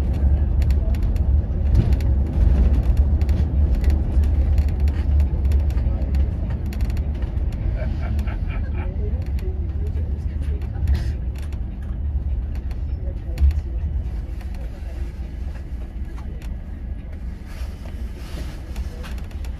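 A bus engine rumbles steadily as it drives along a street.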